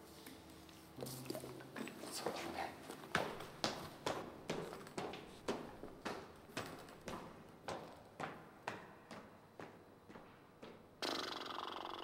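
Footsteps thud quickly up a stairway.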